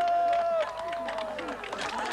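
A young man talks animatedly into a microphone.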